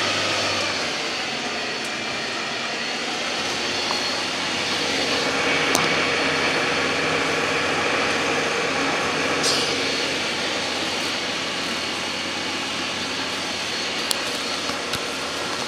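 Water rushes and splashes against a hull.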